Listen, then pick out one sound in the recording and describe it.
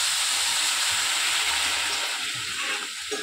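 Water pours into a pan with a steady splashing rush.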